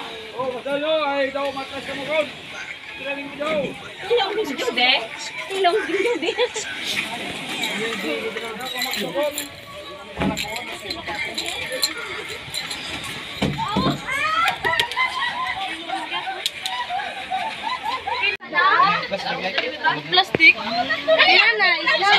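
Several people talk with animation close by, outdoors.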